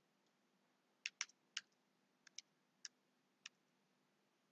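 Keys click on a computer keyboard in short bursts.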